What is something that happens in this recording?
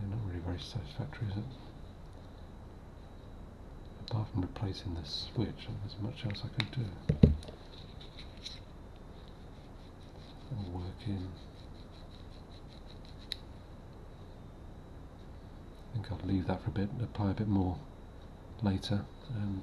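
Small plastic parts click and tap as they are handled close by.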